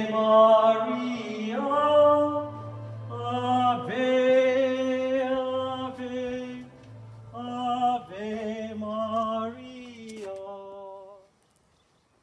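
A man chants slowly in a sung voice.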